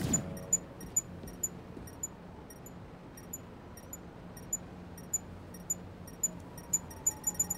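Light footsteps tap quickly on a hard surface.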